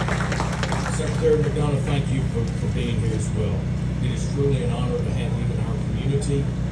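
A middle-aged man speaks calmly into a microphone over a loudspeaker.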